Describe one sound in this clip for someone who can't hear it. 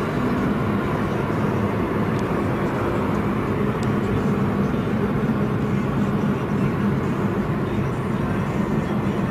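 Tyres roar on a motorway.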